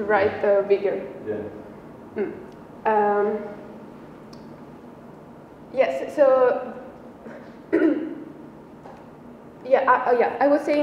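A young woman speaks calmly, pausing between phrases.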